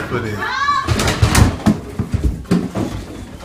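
A man thuds heavily against a door.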